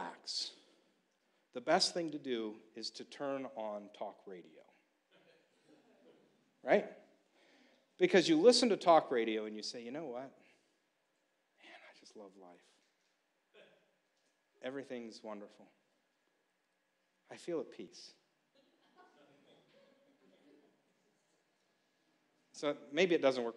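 A middle-aged man speaks calmly and with emphasis into a microphone, in bursts with pauses.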